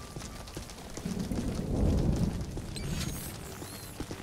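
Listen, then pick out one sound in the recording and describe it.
A large creature growls with a deep rumble up close.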